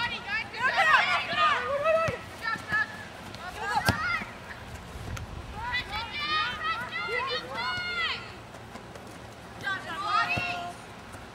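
Young girls shout to each other across an open field.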